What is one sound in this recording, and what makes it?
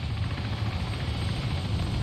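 A helicopter drones overhead, growing louder.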